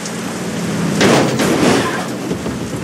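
A car crashes into a roadside bank with a loud thud.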